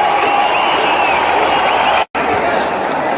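Young men nearby shout and cheer excitedly.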